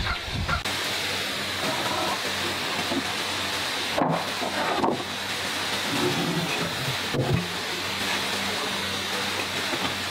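Wooden boards knock and scrape as they are moved.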